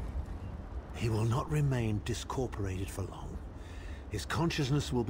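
A middle-aged man speaks calmly and gravely.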